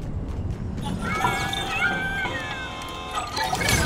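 A machine plays a bright electronic jingle.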